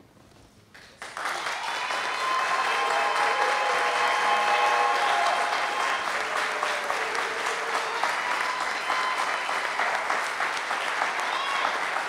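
A crowd claps and cheers loudly.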